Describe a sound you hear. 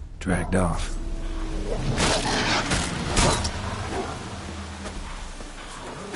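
A sword swishes and clashes in a fight.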